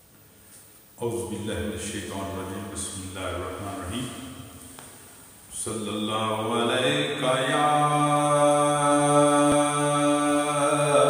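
A man chants a melody slowly into a close microphone.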